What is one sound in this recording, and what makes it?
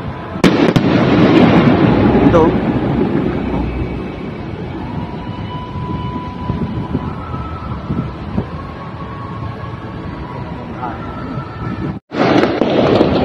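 Fireworks bang and crackle loudly overhead.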